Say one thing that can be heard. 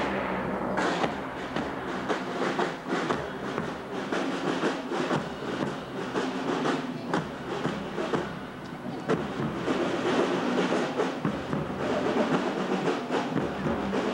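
Footsteps shuffle on a paved street as a crowd marches past.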